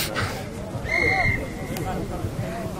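A referee's whistle blows once, briefly.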